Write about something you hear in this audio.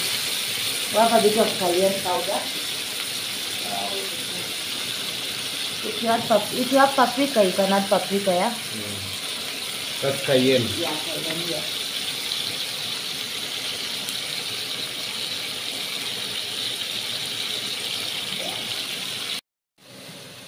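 Food sizzles steadily in a hot frying pan.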